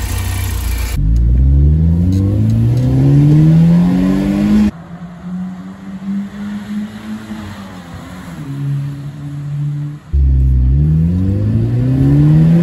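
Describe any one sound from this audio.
A car engine revs up repeatedly, rising in pitch as the car accelerates.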